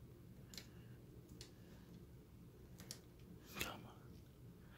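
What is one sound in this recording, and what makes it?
Small plastic parts click faintly as they are pressed into place.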